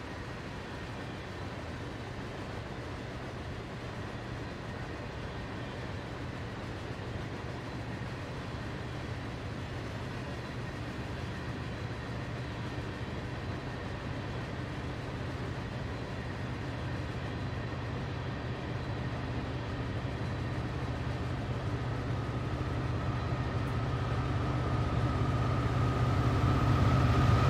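A long freight train rumbles steadily past, slowly growing louder.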